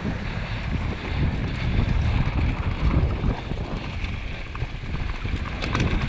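Bicycle tyres crunch and rattle over bumpy dirt.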